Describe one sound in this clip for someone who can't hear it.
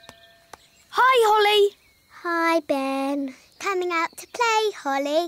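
A young girl speaks brightly in a high cartoon voice.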